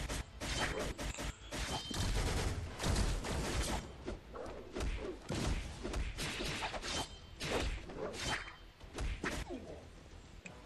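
Whooshing strikes and heavy impacts clash rapidly in a fight.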